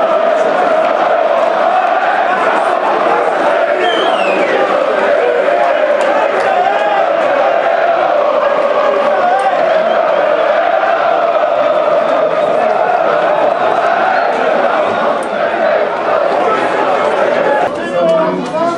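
A large crowd of fans chants loudly and steadily in an open stadium.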